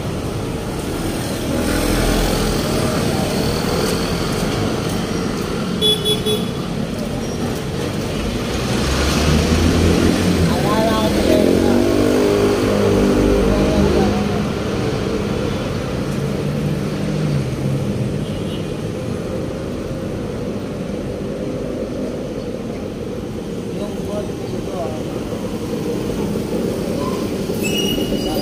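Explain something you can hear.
Traffic rumbles steadily along a busy street outdoors.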